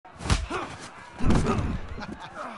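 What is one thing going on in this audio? Fists thud against a body.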